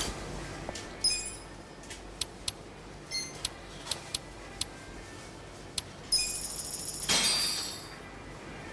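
Short electronic menu beeps sound in quick succession.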